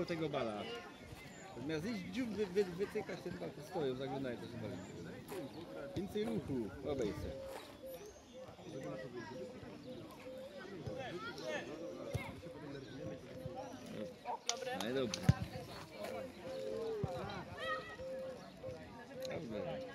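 Children shout and call out outdoors.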